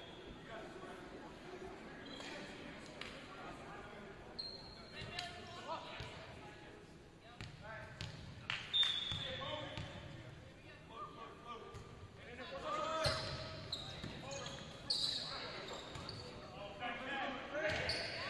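Shoes squeak sharply on a gym floor in a large echoing hall.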